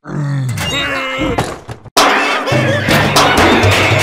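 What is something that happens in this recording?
A metal can lid clanks.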